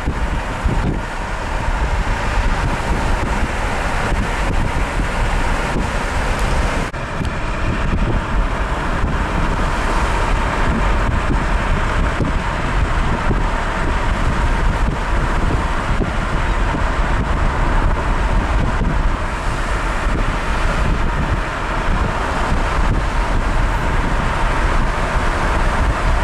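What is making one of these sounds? Tyres rumble on a paved road, heard from inside a moving car.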